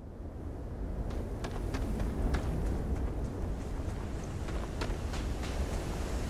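Footsteps crunch on dry, dusty ground.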